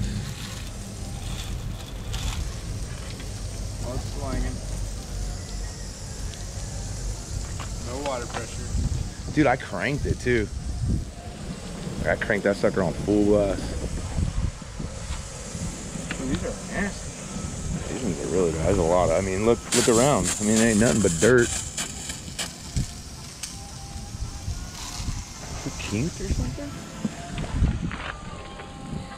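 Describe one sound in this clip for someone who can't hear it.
A brush scrubs a wet surface.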